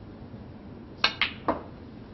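A snooker cue strikes the cue ball.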